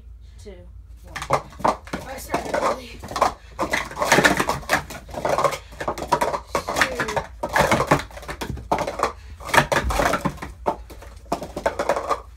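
Plastic cups clatter and tap as they are stacked quickly.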